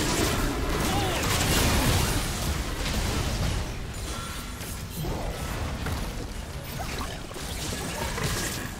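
Game spells and attacks crackle and burst in a busy fight.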